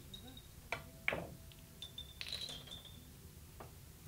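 Billiard balls click against each other and the cushions.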